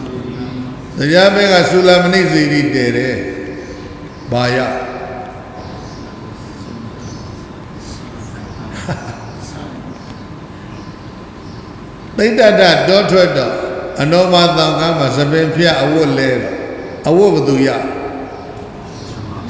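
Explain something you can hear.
An elderly man reads aloud slowly into a microphone, chanting in drawn-out phrases with long pauses.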